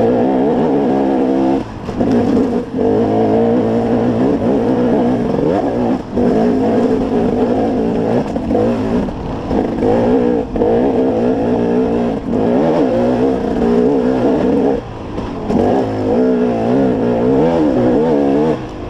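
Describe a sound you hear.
A dirt bike engine revs hard up close, rising and falling with brief dips between gear changes.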